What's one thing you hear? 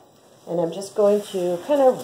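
Bubble wrap crinkles in a woman's hands.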